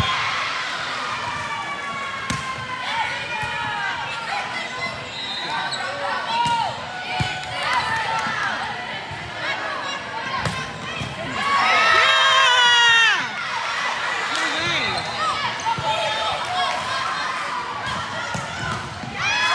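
A volleyball thuds off players' hands.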